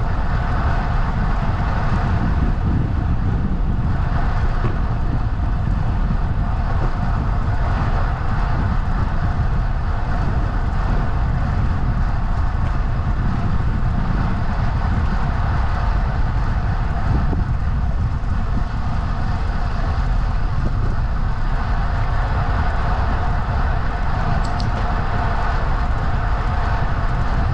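Bicycle tyres hum on smooth pavement.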